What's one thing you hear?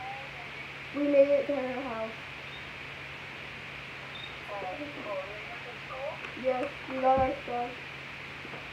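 A second young girl talks close by.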